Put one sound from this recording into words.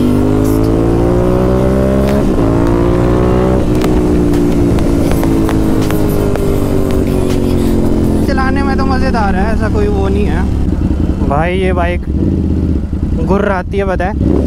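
A motorcycle engine roars at speed, its pitch rising with each gear before dropping to a low idle.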